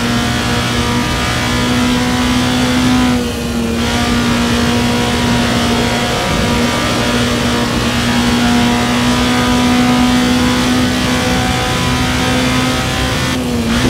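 A racing car engine drones steadily at high revs, dipping briefly as gears change.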